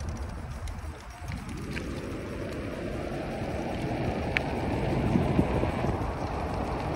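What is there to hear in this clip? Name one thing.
Bicycle tyres roll on asphalt.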